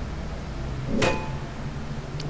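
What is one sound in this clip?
An electric light bursts with a crackle of sparks.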